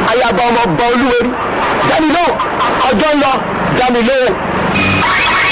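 A man sings loudly close by, his voice wavering.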